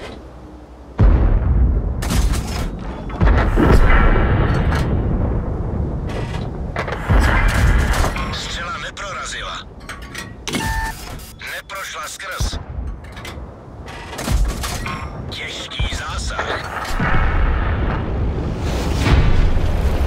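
Tank cannons fire with heavy booming blasts.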